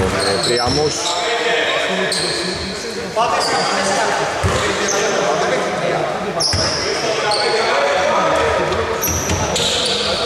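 A basketball thuds as it bounces on the floor.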